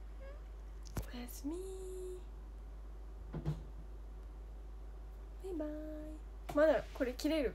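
A young woman speaks softly and cheerfully, close to a phone microphone.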